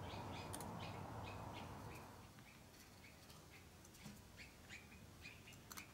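A small metal tool scrapes and taps against a metal plate.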